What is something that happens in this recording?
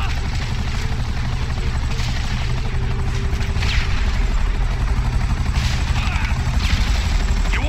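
Gunshots crack from a rifle.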